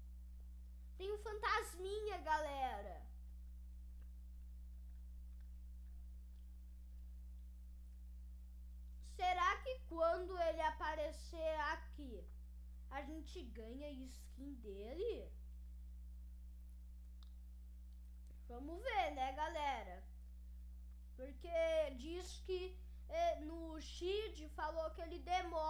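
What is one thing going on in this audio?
A boy talks into a close microphone in short bursts, with animation.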